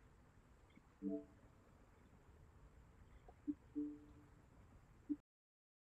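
Short, soft interface chimes sound now and then.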